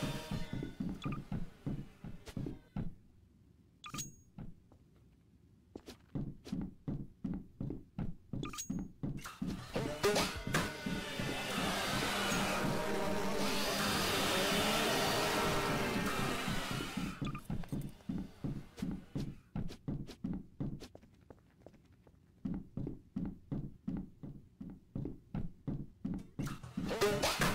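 Quick footsteps run across a wooden floor.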